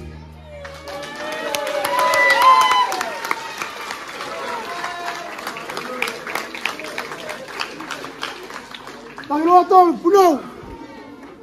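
Women cheer and whoop loudly nearby.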